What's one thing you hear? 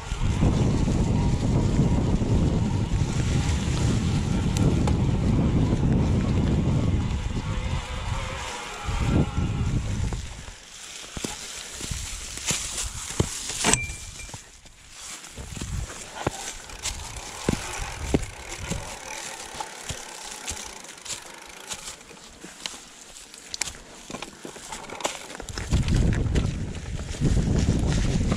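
Wind rumbles and buffets loudly against a microphone.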